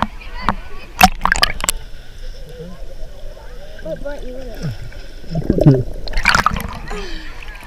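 Water splashes and sloshes close by as something dips in and out of it.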